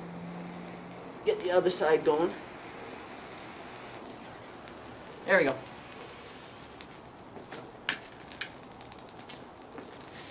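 A gas torch flame hisses and roars steadily.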